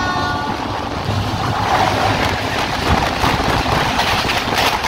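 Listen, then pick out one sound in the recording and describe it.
A passing train roars by at speed in rushing wind.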